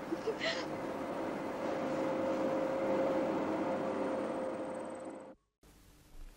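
A lathe hums steadily and then stops.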